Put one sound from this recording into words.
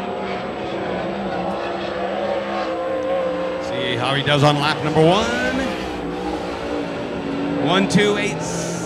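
A race car engine roars loudly, revving up and down as the car speeds past.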